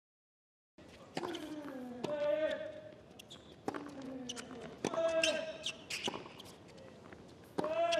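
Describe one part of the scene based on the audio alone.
A tennis ball is struck with a racket, in sharp pops.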